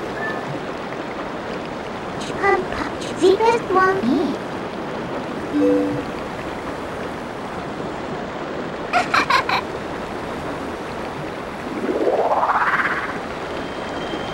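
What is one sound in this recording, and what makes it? Water rushes steadily over a waterfall.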